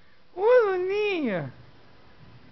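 A small dog lets out a short, rising and falling howl.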